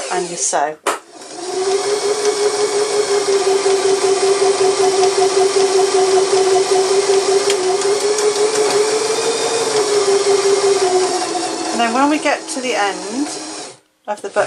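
A sewing machine runs steadily, stitching with a rapid whirring hum.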